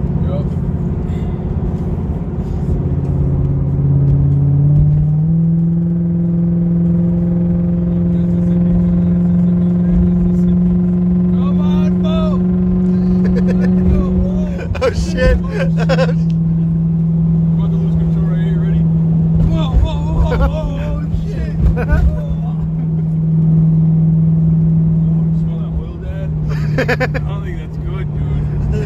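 A car engine hums steadily and shifts up in pitch.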